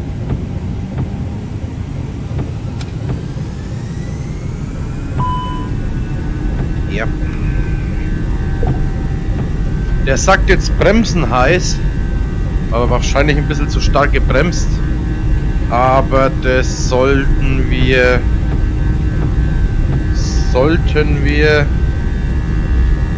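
Jet engines roar steadily and grow louder as an airliner speeds down a runway.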